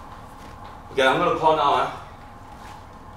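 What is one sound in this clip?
A man talks with animation nearby.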